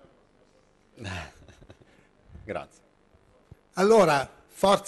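An elderly man speaks into a microphone in a calm, hesitant way.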